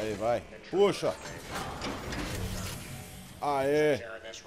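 A heavy metal door grinds and scrapes open.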